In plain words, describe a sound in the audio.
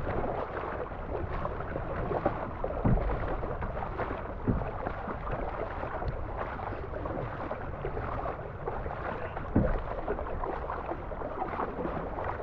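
Paddle blades splash and swish through water in a steady rhythm.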